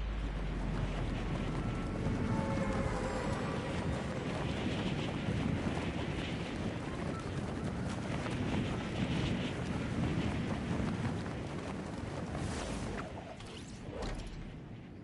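Wind roars loudly during a fast fall through the air.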